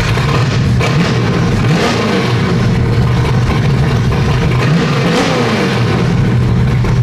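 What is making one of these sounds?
A car engine revs up briefly and settles back down.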